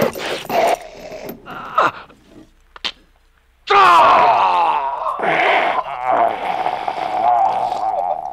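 A man groans and cries out in distress.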